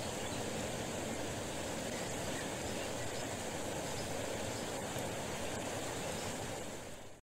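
A shallow creek babbles and rushes steadily over stones.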